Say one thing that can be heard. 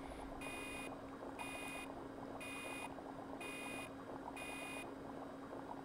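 A machine beeps in a steady repeating rhythm.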